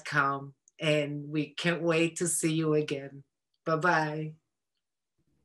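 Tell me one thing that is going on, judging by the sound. An older woman speaks cheerfully over an online call.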